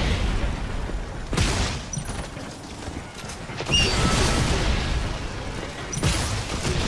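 Game weapons fire and blast in quick bursts.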